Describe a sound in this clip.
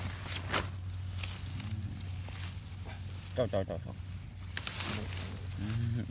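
Leaves rustle as plants are pushed aside.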